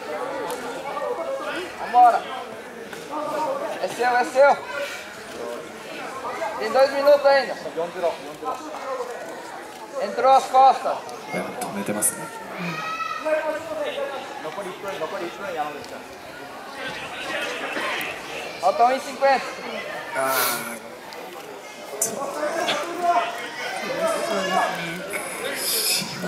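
Men shout instructions with animation nearby, in an echoing hall.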